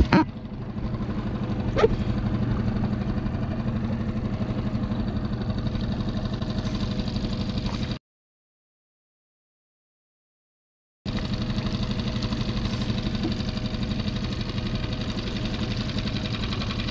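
Small waves lap gently against a kayak.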